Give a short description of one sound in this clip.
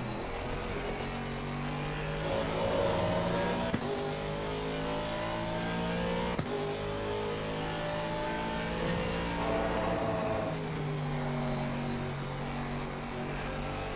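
A racing car engine roars and revs up and down through the gears.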